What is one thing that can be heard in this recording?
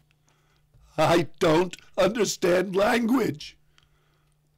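A man sings up close in a strong voice.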